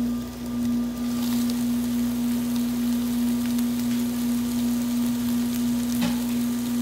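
Meat sizzles and crackles on a hot grill.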